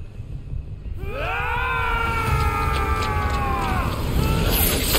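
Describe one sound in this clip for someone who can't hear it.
A man laughs loudly and wildly.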